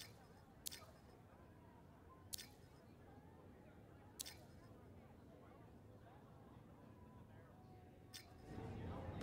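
Menu clicks sound sharply, one at a time.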